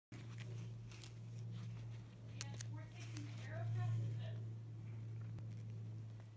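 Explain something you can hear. A zipper pull clicks and rattles against the fabric.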